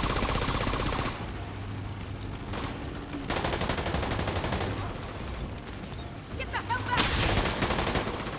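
Gunfire crackles in the distance.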